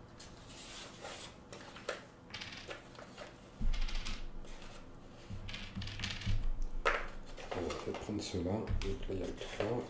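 Small tokens click down onto a wooden table.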